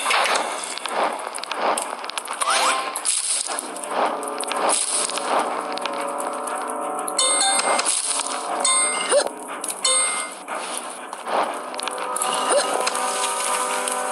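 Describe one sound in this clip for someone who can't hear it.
Upbeat game music plays steadily.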